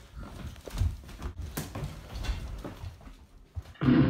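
Footsteps thud quickly across a hard floor.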